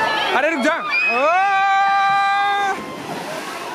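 Young people scream and shout excitedly close by.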